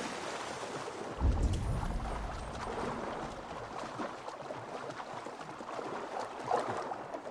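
Water splashes and sloshes as someone swims.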